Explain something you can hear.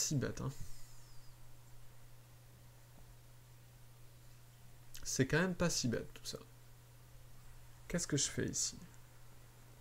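A man speaks calmly in short bursts through a microphone.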